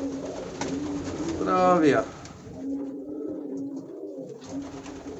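Pigeons coo.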